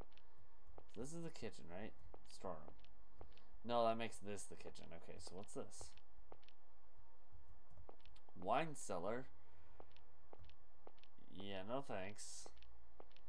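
A young man speaks into a headset microphone in short bursts.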